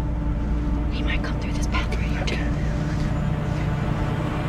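A young woman whispers softly close by.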